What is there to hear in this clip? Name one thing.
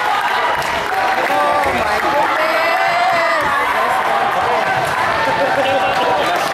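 A crowd of young people talks and calls out in a large echoing hall.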